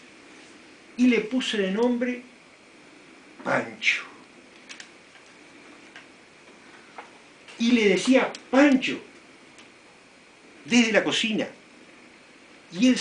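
An older man speaks in short bursts nearby.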